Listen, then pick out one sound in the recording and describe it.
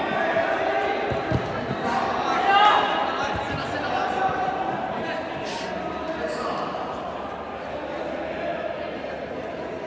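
Young players shout and call out to each other in a large echoing hall.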